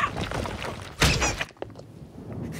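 A heavy stone block crashes down with a thud.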